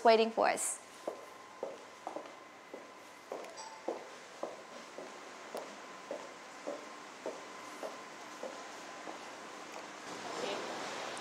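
High heels click steadily on a hard floor.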